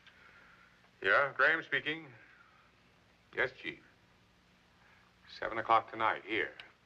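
A middle-aged man speaks into a telephone in short bursts.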